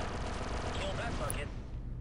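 A rifle fires a quick burst of blaster shots.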